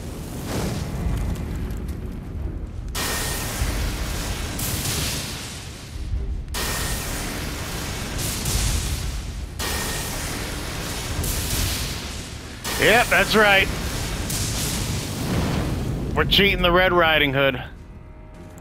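Lightning crackles and booms in repeated bursts.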